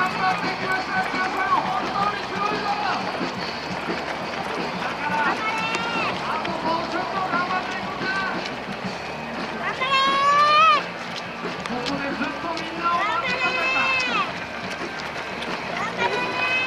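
A crowd of men and women call out and cheer nearby, outdoors.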